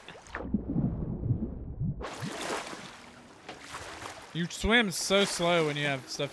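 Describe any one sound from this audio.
Waves wash and lap against a boat.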